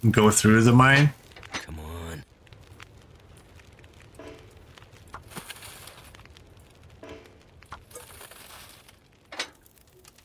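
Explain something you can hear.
A fire crackles softly in a stove.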